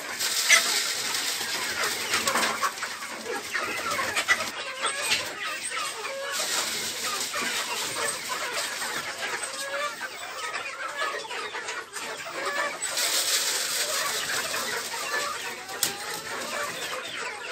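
Many chicks cheep and chirp constantly.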